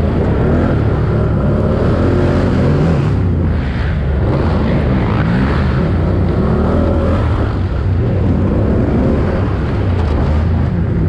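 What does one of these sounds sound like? A motorcycle engine revs and roars up close.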